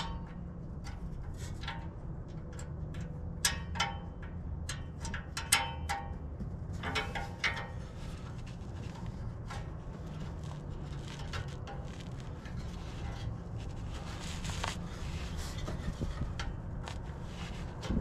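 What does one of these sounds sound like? Metal parts clink and click as hands work a bolt under a car.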